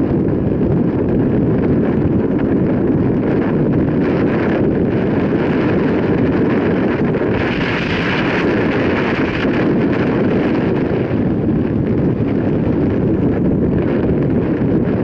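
Wind roars loudly across a microphone outdoors.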